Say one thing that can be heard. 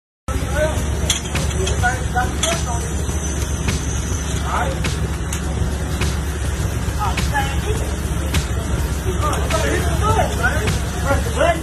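A pressure washer sprays water with a steady hiss and rumble.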